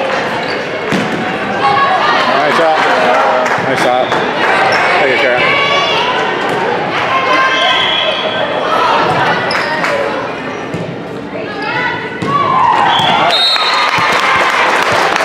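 A volleyball is struck by hands with sharp slaps.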